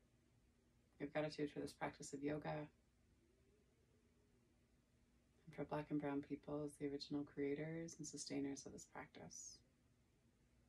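A young woman speaks calmly and softly nearby, with long pauses.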